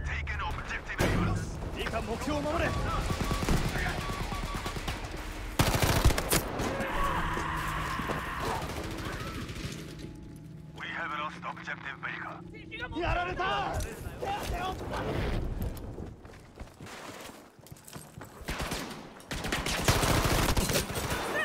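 Rifle shots crack loudly and echo off rock walls.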